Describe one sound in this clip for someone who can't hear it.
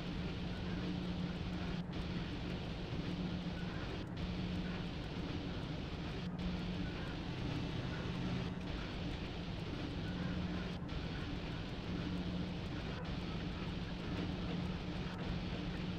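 Train wheels rumble on the rails.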